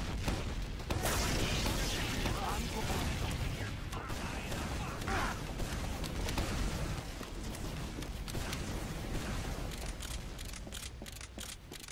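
A game weapon fires in rapid bursts.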